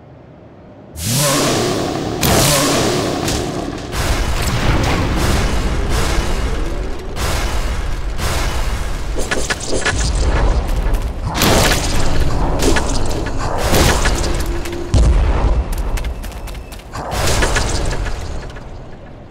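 Heavy blows thud and flesh splatters wetly.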